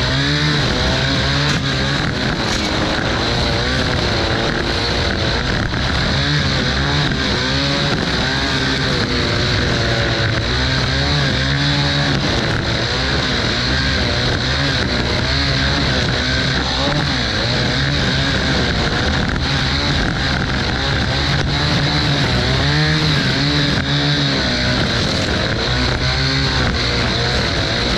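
A string trimmer whines steadily, cutting grass.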